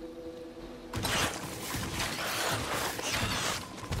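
Weapons fire and blasts crackle loudly in a video game fight.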